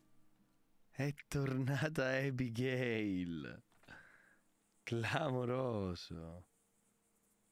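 A young man speaks animatedly and close into a microphone.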